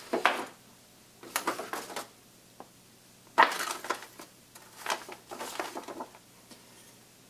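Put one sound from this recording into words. A paper sheet rustles and flaps as it unfolds.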